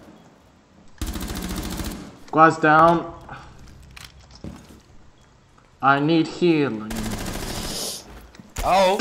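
Rifle shots fire in short bursts.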